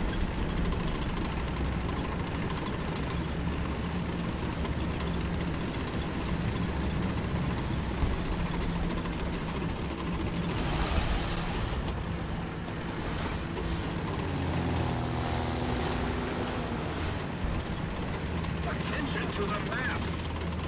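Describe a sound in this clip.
A tank engine rumbles steadily at low pitch.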